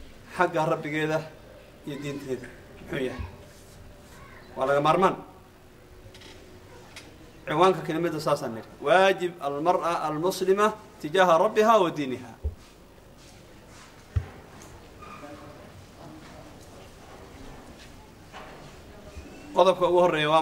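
A middle-aged man speaks into a microphone with emphasis, in short bursts with pauses.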